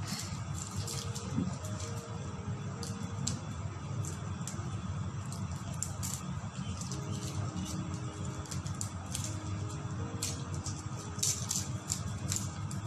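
Fingers peel the papery skins off garlic cloves with soft crackling.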